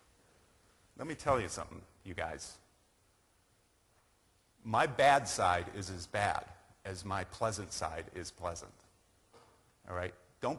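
A man speaks to an audience in a large hall, heard through a microphone with a slight echo.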